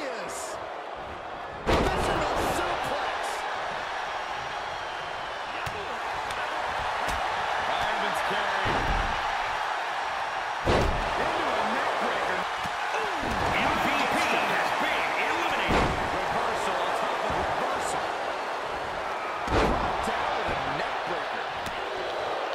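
A large arena crowd cheers and roars.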